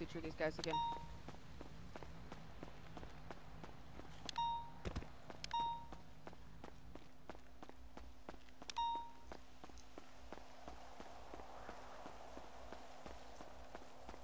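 Footsteps run quickly and steadily on pavement.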